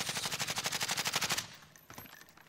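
A gun fires in a rapid automatic burst.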